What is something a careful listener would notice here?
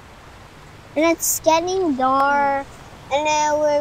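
A young boy sings loudly in long, drawn-out notes close by.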